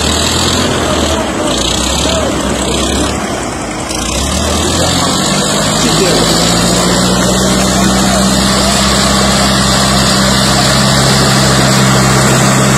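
Tractor engines run and rumble loudly outdoors.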